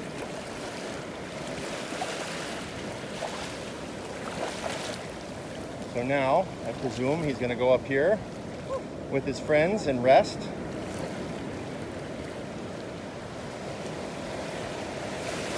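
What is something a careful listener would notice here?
Shallow water laps and swirls gently against a sandy shore.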